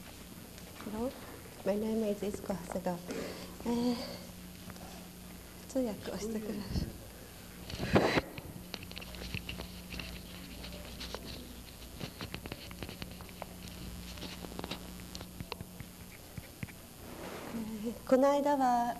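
A man speaks slowly and haltingly, with long pauses.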